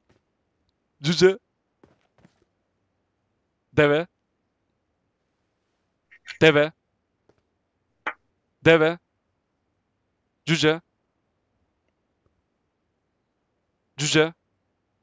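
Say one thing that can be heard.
A man speaks short phrases into a headset microphone, close up, with pauses between them.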